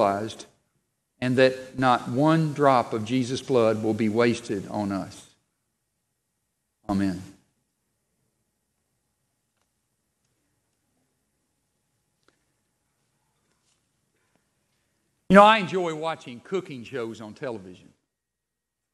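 A middle-aged man speaks calmly through a headset microphone, with long pauses.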